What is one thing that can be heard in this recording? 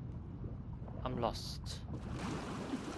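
A swimmer breaks through the water's surface with a splash.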